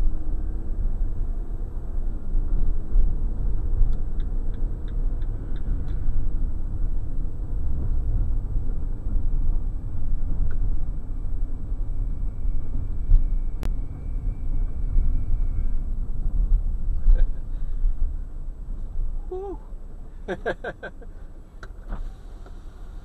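A car engine hums and road noise rumbles from inside a moving car.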